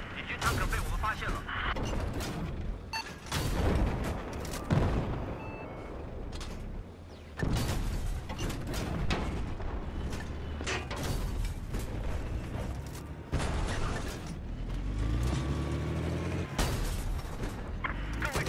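A tank cannon fires with heavy booms.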